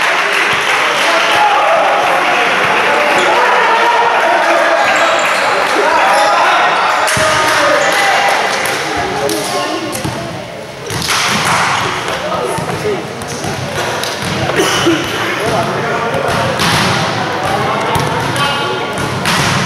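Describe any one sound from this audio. A crowd of players and spectators shouts and calls out in a large echoing hall.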